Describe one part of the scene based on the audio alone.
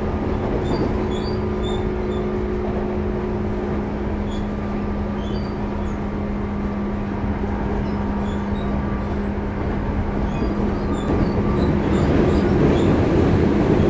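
An electric train rumbles along the track with a steady hum.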